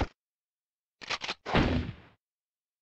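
Menu selection blips sound.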